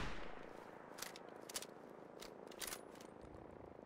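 A rifle's bolt clicks and clacks as it is reloaded.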